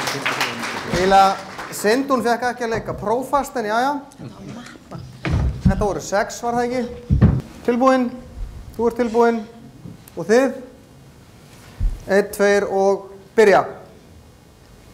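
A man speaks loudly with animation.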